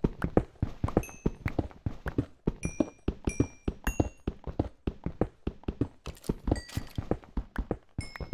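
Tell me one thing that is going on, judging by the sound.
Small items pop as they are picked up.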